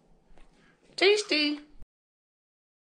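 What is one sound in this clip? A woman speaks briefly and cheerfully close by.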